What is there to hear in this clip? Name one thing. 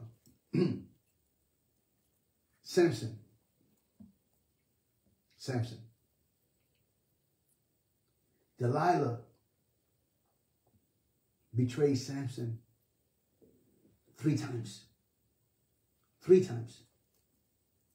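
A man speaks slowly and calmly in short phrases, close to the microphone, with long pauses.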